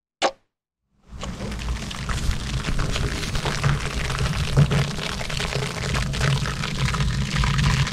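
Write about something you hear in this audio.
Fermenting grape must fizzes and crackles with tiny bursting bubbles, close by.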